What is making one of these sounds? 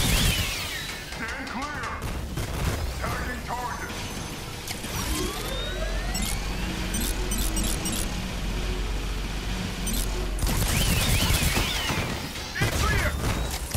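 Energy blasts fire in rapid bursts.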